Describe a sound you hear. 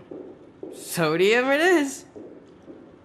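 A young woman speaks briefly, close by.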